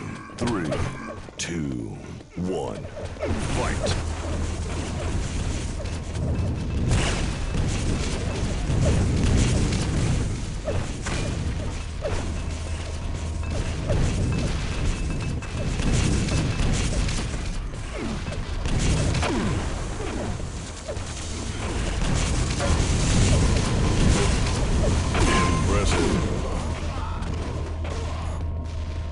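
Rockets and guns fire in quick bursts.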